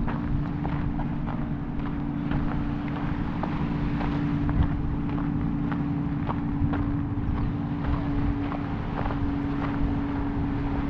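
Small waves lap gently against a pebbly shore.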